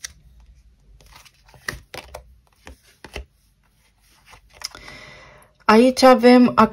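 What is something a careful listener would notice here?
Playing cards slap and rustle as they are shuffled by hand.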